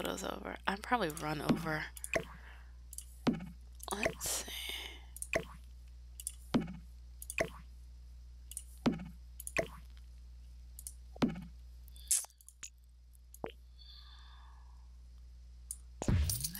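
A computer game plays short clicks as items are placed.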